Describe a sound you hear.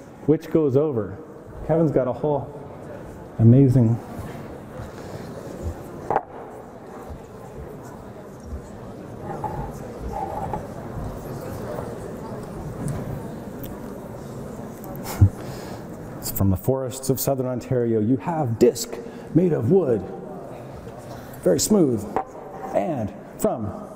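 A young man speaks calmly to an audience.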